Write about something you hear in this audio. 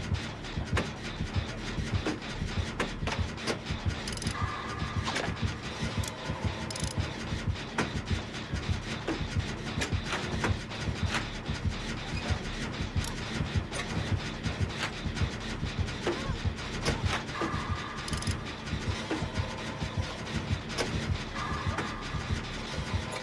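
Metal parts rattle and clank steadily as an engine is repaired.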